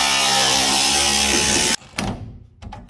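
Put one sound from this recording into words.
A power grinder whines loudly against metal.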